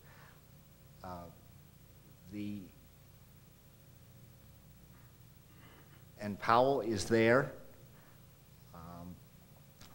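A middle-aged man speaks calmly into a microphone, in short phrases with pauses.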